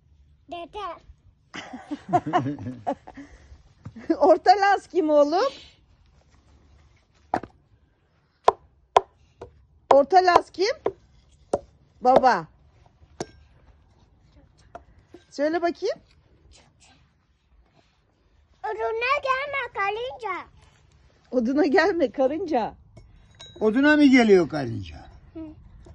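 A young boy talks with animation.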